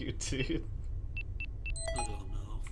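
Keypad buttons beep in short high tones.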